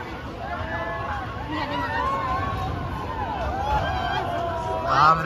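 A fairground ride's machinery whirs as it swings.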